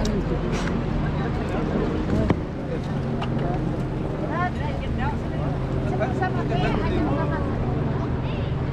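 Several men and women talk and call out nearby outdoors.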